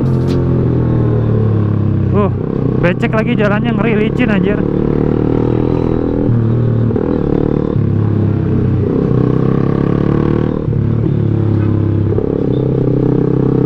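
A motorbike engine hums loudly up close, its pitch shifting as it changes gear.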